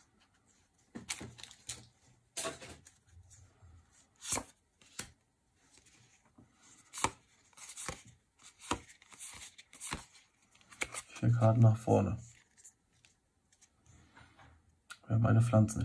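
Trading cards slide and tap against each other as they are handled.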